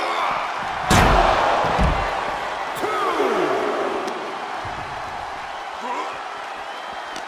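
A large crowd cheers loudly throughout.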